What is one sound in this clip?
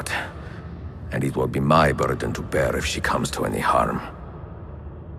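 A man speaks in a low, troubled voice close to the microphone.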